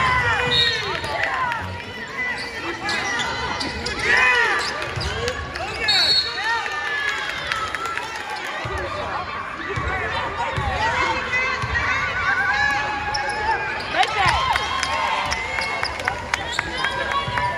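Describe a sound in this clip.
Players and spectators call out in a large echoing gym.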